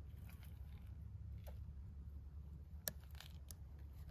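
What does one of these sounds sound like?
Footsteps crunch slowly on gravel outdoors.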